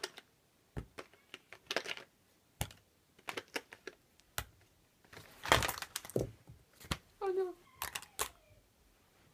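Small plastic tubes knock softly as they are set down one by one.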